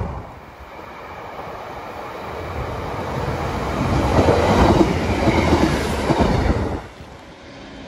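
A train rushes past close by, its roar rising and then cutting off.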